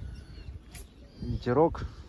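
Wind rustles through reeds close by.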